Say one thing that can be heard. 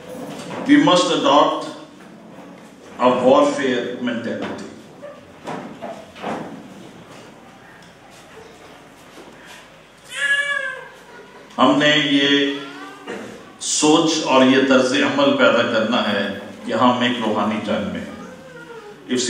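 An elderly man preaches through a microphone in a measured voice, with pauses.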